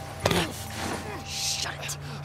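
A young woman mutters harshly through clenched teeth.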